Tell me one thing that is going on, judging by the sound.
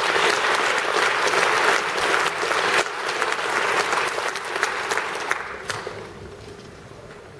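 A large audience applauds loudly, and the clapping fades away.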